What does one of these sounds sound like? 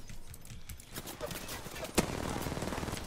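Gunshots fire in a video game.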